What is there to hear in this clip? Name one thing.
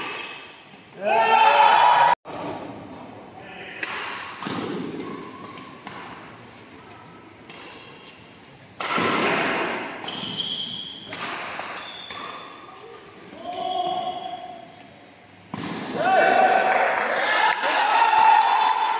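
A crowd of spectators cheers and shouts loudly in an echoing hall.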